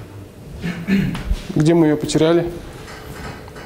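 A man speaks in a lecturing tone in a room with some echo.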